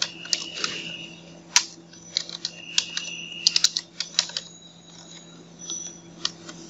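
Keys clack on a keyboard in quick, uneven bursts.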